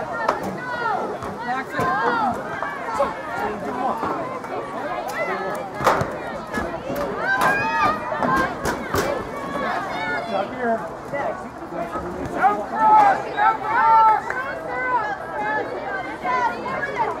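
Spectators cheer and shout from the sidelines outdoors.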